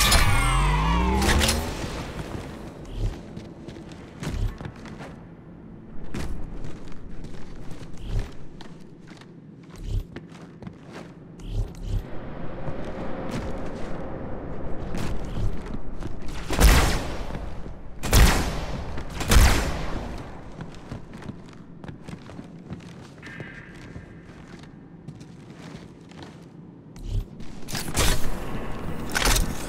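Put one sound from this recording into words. Heavy footsteps thud on a metal floor.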